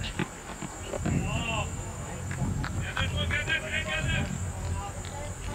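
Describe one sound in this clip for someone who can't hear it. Young men call out to each other across an open field, distant.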